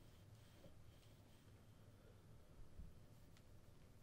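Metal cups clink together lightly.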